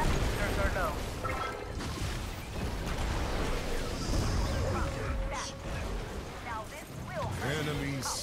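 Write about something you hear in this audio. Game battle sounds of spells, blasts and hits clash throughout.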